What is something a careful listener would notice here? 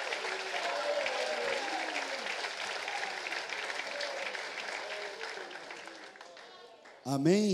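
A crowd of people pray aloud together in a murmur of voices.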